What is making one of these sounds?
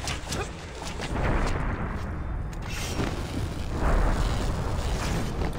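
Fabric rips loudly in a long tear.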